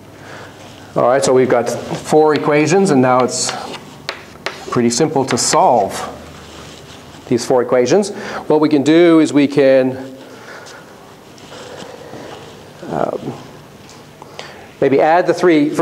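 An elderly man speaks calmly and clearly, as if lecturing.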